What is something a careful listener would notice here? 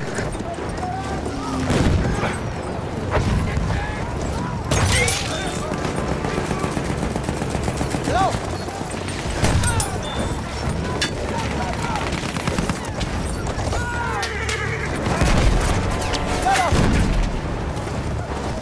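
Horse hooves thud steadily on the ground.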